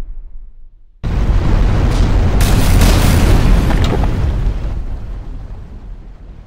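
A loud explosion booms and roars, then slowly dies away.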